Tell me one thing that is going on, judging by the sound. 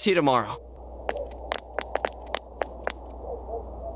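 Quick footsteps run off on pavement.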